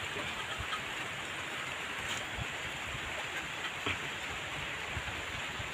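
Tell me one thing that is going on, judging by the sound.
Rain falls steadily outdoors, pattering all around.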